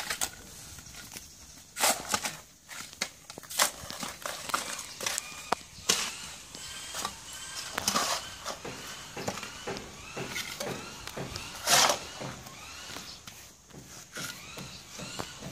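Spades chop and scrape into dry soil.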